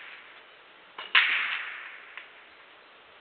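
Billiard balls knock together and roll.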